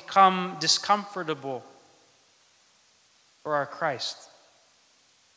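A man speaks calmly into a microphone, with a slight echo.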